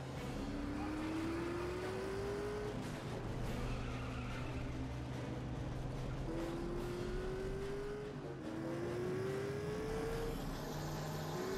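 A racing car engine revs and climbs in pitch as it shifts through gears.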